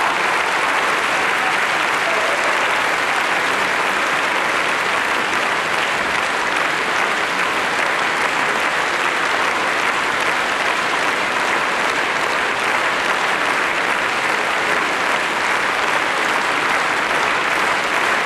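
A large audience applauds steadily in an echoing concert hall.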